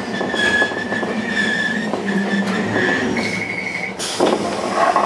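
A train's wheels or brakes squeal with a high, steady whine.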